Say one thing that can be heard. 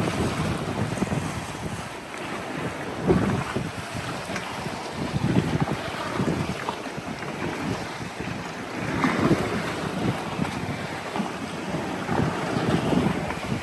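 Waves slosh and splash against rocks.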